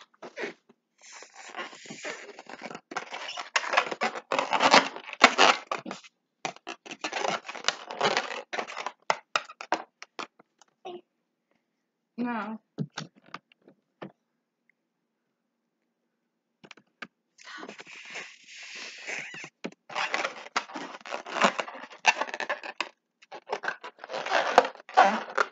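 A young girl blows hard into a balloon, close by.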